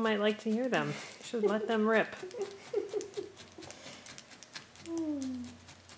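A felting needle pokes softly into wool.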